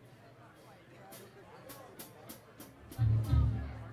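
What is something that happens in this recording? A drummer taps a cymbal several times.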